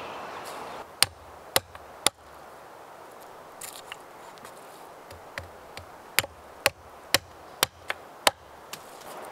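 An axe knocks sharply into wood, several times.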